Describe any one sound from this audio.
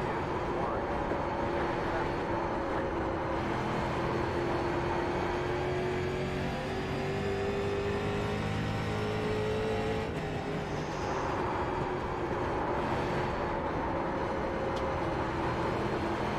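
A race car engine roars steadily, its pitch rising and falling with the gears.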